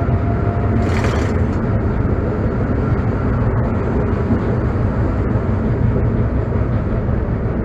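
Wheels clatter over rail joints.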